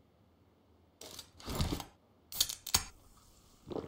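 A drink can pops open with a hiss.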